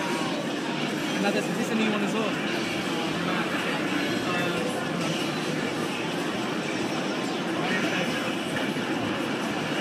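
Video game fight sounds of blows and energy blasts play through a television loudspeaker.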